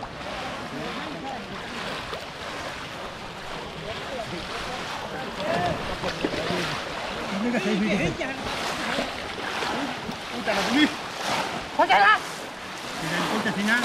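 Men and women talk and call out nearby outdoors.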